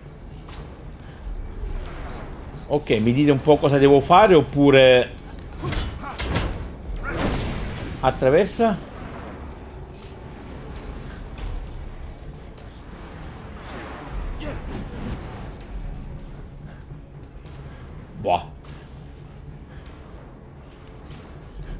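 Footsteps clang on a metal floor.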